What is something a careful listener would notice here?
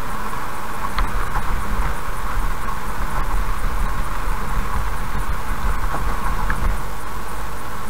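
Tyres hum and rumble steadily on a paved road.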